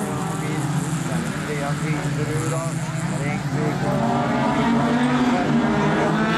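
Car tyres skid and scrabble on gravel and tarmac.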